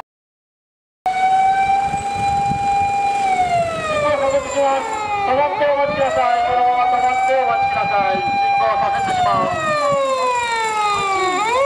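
A fire engine siren wails, rising and falling in pitch.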